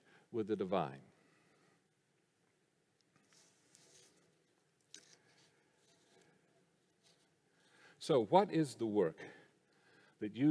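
An older man speaks calmly into a microphone, with pauses, in a reverberant room.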